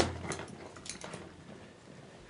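Hooves thud and scuff on dry dirt as an antelope runs off.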